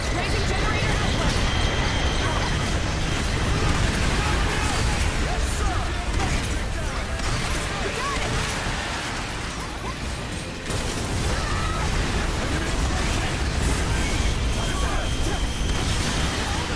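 A laser beam hums and crackles.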